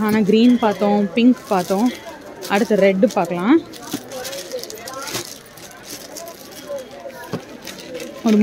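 Plastic wrapping crinkles as fabric is handled.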